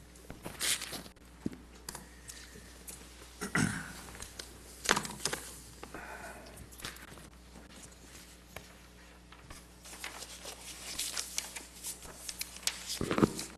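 A man speaks quietly through a microphone.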